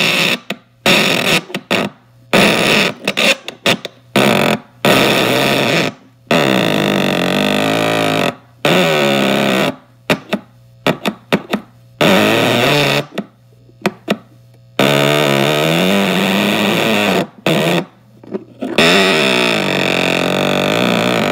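Metal springs twang and boing, with a hollow, wobbling ring.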